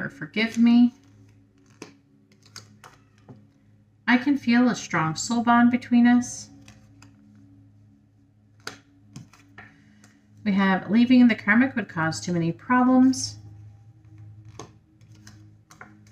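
Paper cards tap softly as they are laid on a table.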